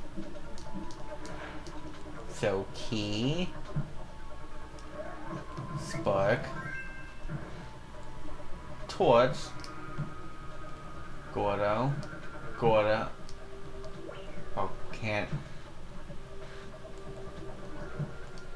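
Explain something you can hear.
Cheerful game music plays throughout.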